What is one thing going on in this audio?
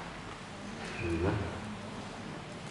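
A man speaks briefly into a microphone.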